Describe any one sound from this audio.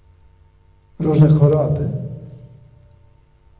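An elderly man speaks briefly into a microphone in an echoing room.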